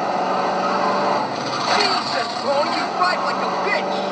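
Tyres screech as a car skids.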